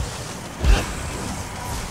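A magic spell bursts with a crackling blast.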